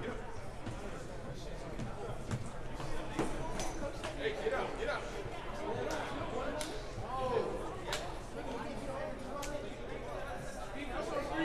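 Young men talk and call out over each other in a large echoing gym.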